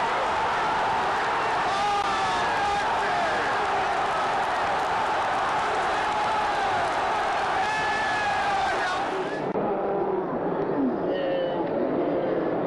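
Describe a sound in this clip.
A large stadium crowd sings and chants loudly.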